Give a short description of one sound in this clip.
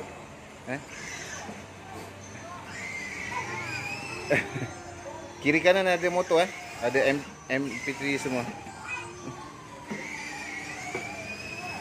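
A small electric toy motorbike whirs as it rolls.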